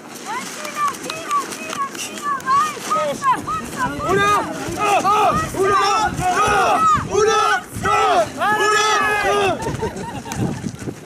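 A crowd of men and women shouts and cheers in rhythm outdoors.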